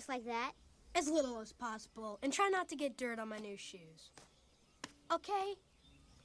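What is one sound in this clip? A young boy speaks playfully and with animation.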